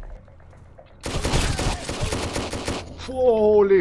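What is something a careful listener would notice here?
Rapid gunfire rattles in a quick burst.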